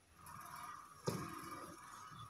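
A book thumps softly as it is opened on a table.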